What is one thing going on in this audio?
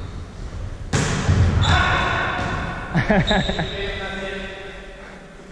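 Young men call out to each other in an echoing hall.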